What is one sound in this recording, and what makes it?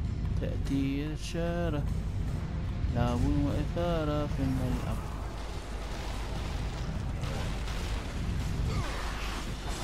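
Huge boulders rumble and roll with a deep roar.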